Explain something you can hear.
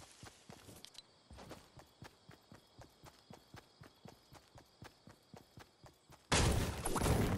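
Footsteps patter quickly and evenly over ground.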